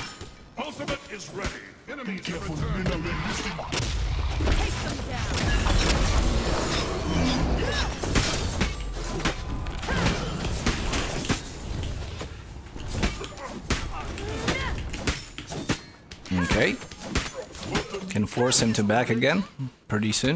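Game weapons clash and magic blasts crackle in quick bursts.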